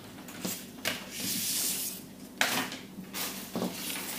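Fabric rustles as a hand picks up soft items.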